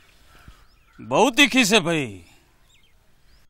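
An elderly man speaks with surprise, close by.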